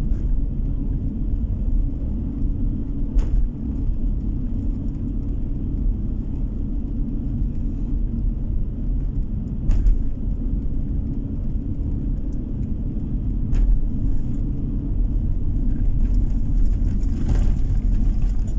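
Tyres roll on a paved road with a low rumble.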